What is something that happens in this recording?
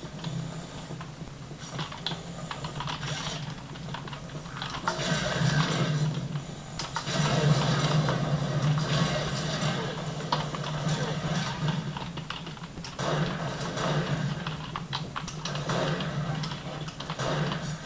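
Keys on a keyboard click and clatter.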